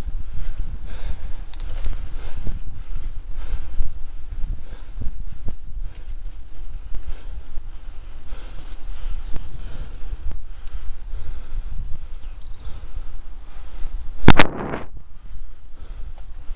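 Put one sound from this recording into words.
Wind rumbles and buffets against the microphone.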